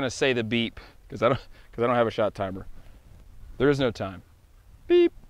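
A man talks calmly nearby outdoors.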